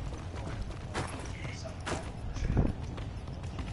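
Gunshots crack sharply a few times.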